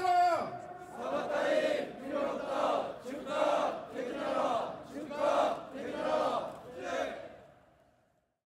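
A large crowd chants in unison outdoors with a steady rhythm.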